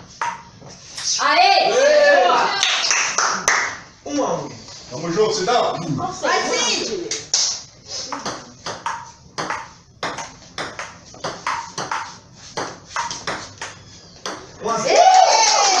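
Men nearby laugh and shout with excitement.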